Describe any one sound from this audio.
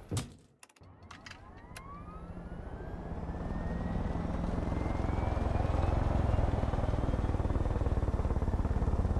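A helicopter engine starts up, its whine rising and the rotor thudding louder and faster.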